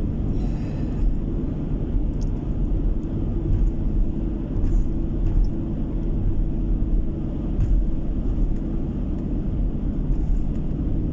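Tyres roll over smooth asphalt with a low, steady rumble.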